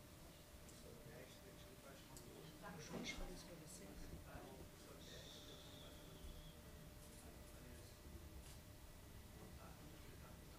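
A man speaks with animation, faint and at a distance, in a room.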